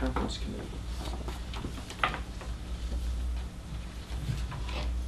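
A man speaks calmly at a distance.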